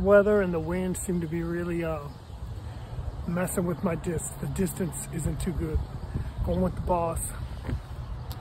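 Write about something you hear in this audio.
An older man speaks casually, close to the microphone.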